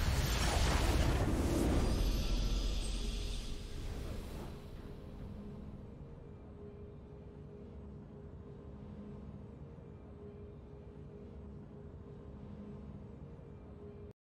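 A triumphant game fanfare swells, then settles into soft, steady music.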